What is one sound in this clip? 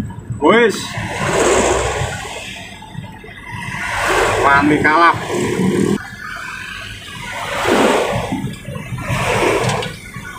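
Large trucks rush past close by with a loud whoosh.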